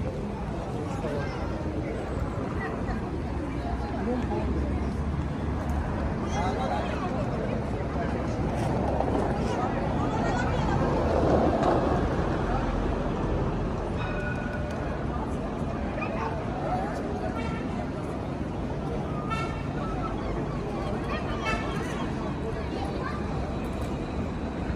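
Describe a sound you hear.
A busy city street hums steadily outdoors.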